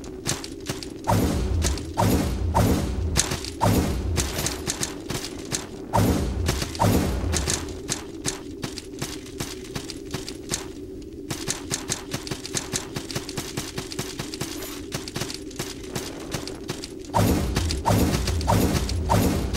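Quick footsteps tap on stone.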